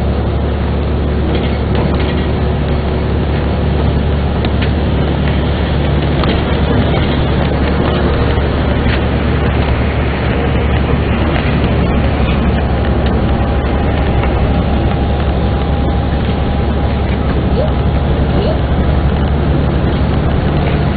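A vehicle's engine hums steadily as it drives through rain.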